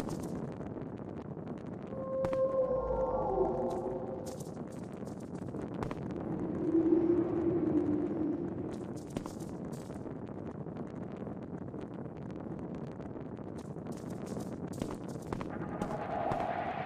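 A torch fire crackles softly.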